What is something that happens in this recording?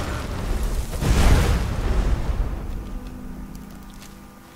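A burst of flame roars across the ground.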